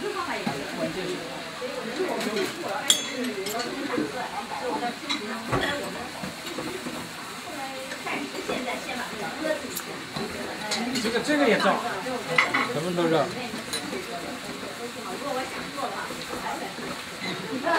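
Glass and china clink as cups are taken from a shelf.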